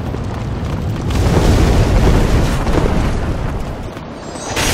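A heavy boulder rumbles and roars as it rolls.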